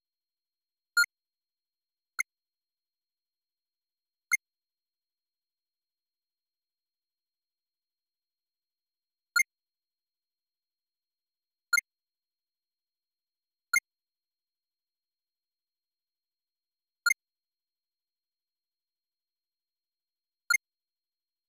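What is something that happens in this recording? A short, high electronic blip sounds now and then.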